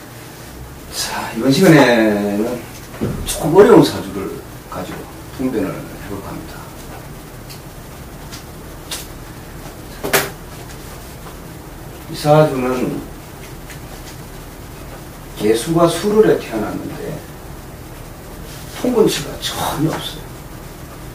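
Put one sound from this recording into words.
A middle-aged man speaks calmly in short phrases, close by.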